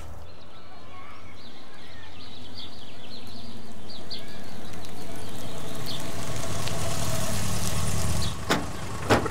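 A car drives up slowly and stops.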